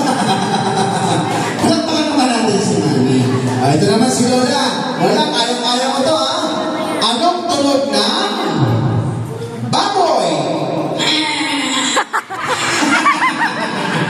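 Women laugh loudly nearby.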